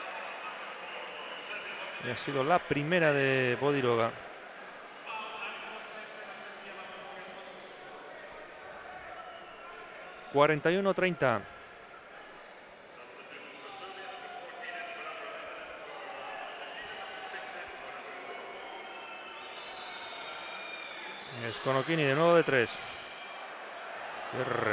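A large crowd murmurs steadily in a big echoing arena.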